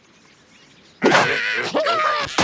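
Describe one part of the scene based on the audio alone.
A cartoon slingshot twangs as a bird is launched.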